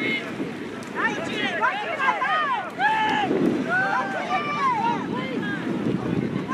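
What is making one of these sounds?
A crowd of spectators cheers and calls out from the sidelines.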